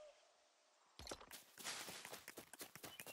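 Quick footsteps rustle through grass.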